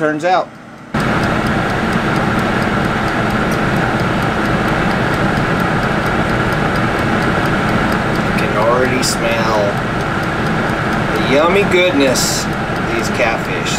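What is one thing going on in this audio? A countertop convection oven's fan whirs steadily.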